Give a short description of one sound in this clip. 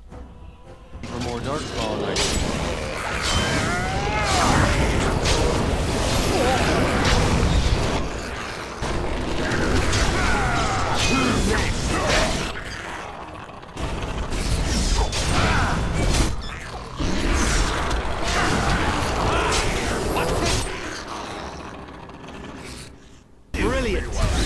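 Swords clash and clang in a chaotic fight.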